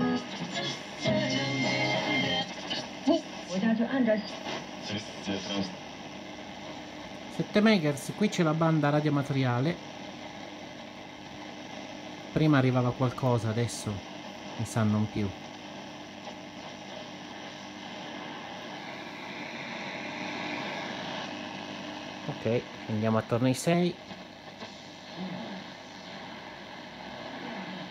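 An old radio hisses with static.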